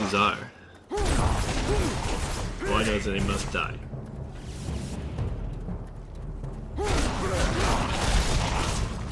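Fiery magic blasts burst with a roar.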